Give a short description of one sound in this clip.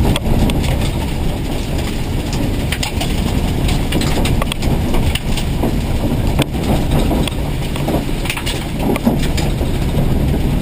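Gravel and stones rattle and clatter against the underside of the car.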